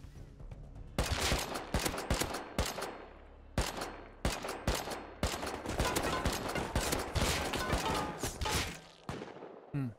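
A heavy weapon fires a series of loud booming shots.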